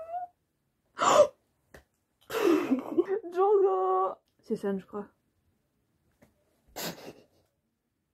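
A young woman gasps and squeals with delight.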